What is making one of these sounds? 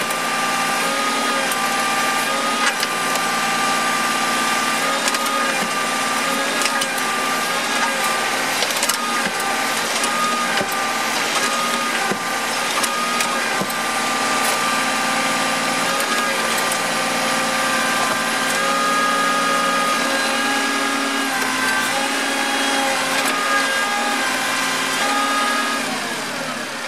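A hydraulic machine drones steadily.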